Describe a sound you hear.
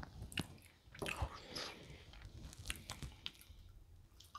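Pastry crackles and tears between fingers.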